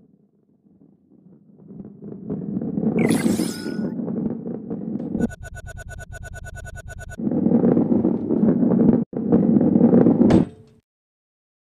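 A heavy ball rolls along a wooden track with a low rumble.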